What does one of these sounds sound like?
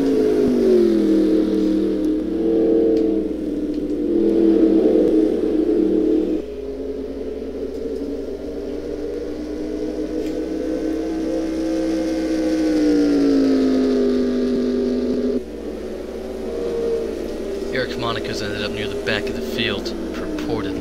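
A race car engine roars steadily, rising and falling in pitch.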